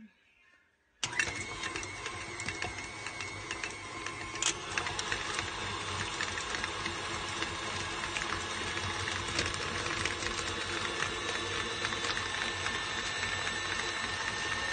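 An electric stand mixer whirs loudly as its motor runs.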